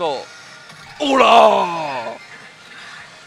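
A young man shouts out excitedly.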